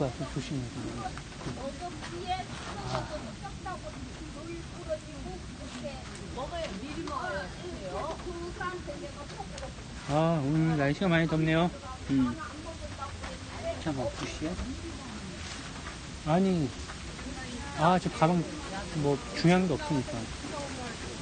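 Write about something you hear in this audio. A young man speaks casually, close to a phone microphone.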